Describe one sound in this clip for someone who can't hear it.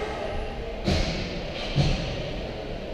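Hockey sticks and a puck clack sharply in a large echoing arena.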